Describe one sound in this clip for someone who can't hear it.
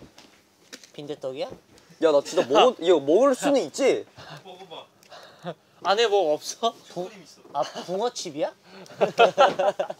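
Young men talk and laugh with animation close by.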